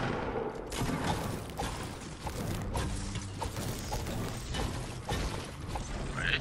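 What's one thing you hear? A pickaxe strikes a wall with repeated thuds.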